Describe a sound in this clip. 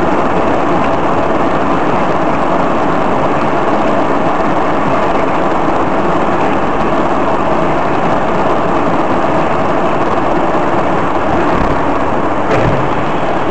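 Tyres hiss and rumble on a slushy road.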